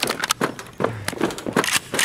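A rifle fires a burst of shots.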